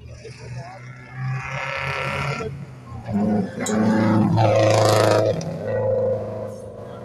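A rally car engine roars and revs as the car speeds past on a dirt track.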